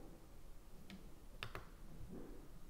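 A finger taps a button on a digital scale with a few sharp clicks.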